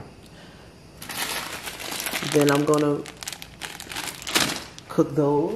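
A plastic noodle packet crinkles in a hand.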